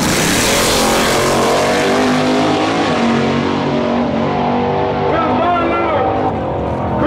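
A race car engine roars loudly and fades into the distance.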